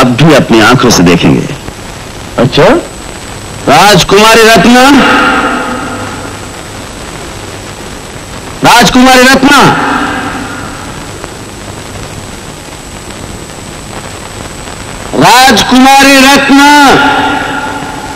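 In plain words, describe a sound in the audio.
A man shouts loudly, his voice echoing through a large hall.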